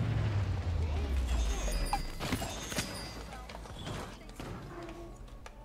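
Cartoonish weapons blast and whoosh in a video game.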